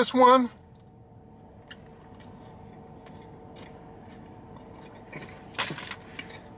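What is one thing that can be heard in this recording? A man chews food with his mouth close to a microphone.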